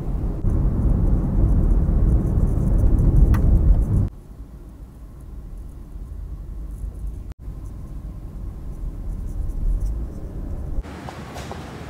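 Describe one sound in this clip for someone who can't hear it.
A car engine rumbles low from inside a moving car.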